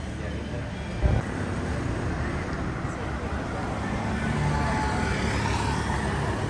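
Traffic rumbles along a street outdoors.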